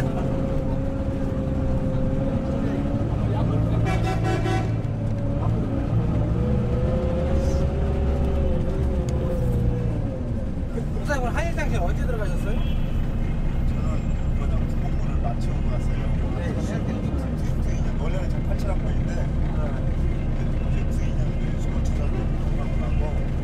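A car engine rumbles steadily while driving through slow city traffic.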